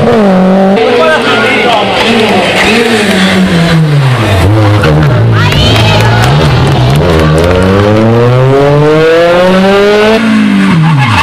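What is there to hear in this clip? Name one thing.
A rally car engine revs hard and roars past close by.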